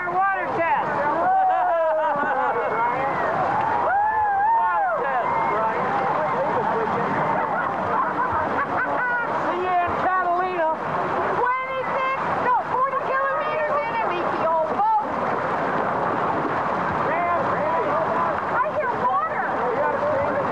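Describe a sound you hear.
Paddle wheels churn and splash through water.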